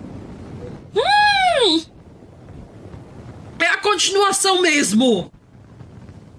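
A young woman shouts excitedly into a close microphone.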